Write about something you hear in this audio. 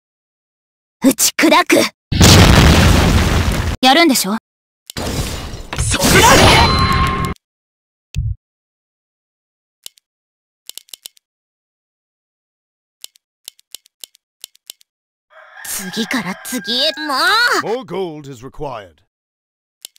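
Magic spell effects whoosh and crackle in short bursts.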